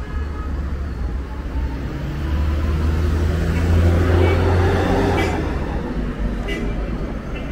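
Traffic hums steadily along a street outdoors.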